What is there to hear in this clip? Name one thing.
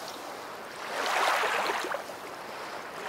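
A dog splashes into water.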